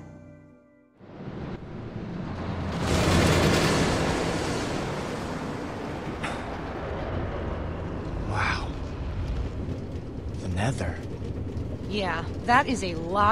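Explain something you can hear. A minecart rattles and rumbles along a metal track.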